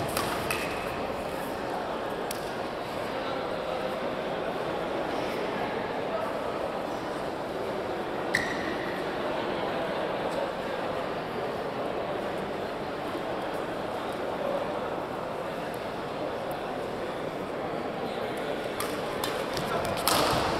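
A steady murmur of voices and activity fills a large echoing hall.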